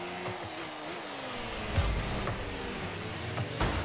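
A car boosts with a rushing roar.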